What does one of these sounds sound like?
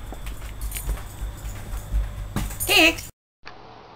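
A dog's claws click on a hard floor.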